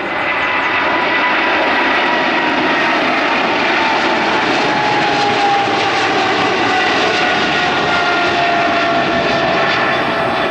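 A jet airliner roars loudly as it takes off and climbs, its engines whining with a slowly falling pitch.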